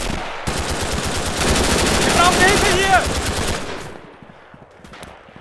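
A submachine gun fires in rapid, loud bursts.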